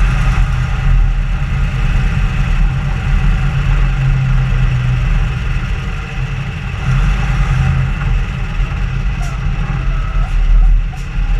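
Wind buffets loudly against the vehicle.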